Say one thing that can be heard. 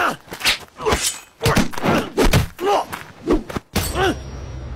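Heavy punches land with sharp thuds.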